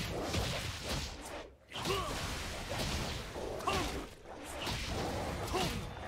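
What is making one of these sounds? Magic spells whoosh and crackle in a fast video game fight.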